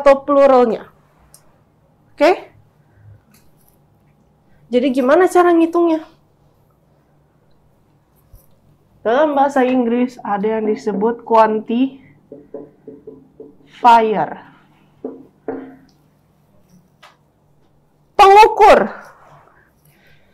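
A woman speaks calmly and clearly, as if teaching, close by.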